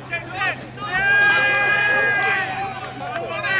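A referee's whistle blows long.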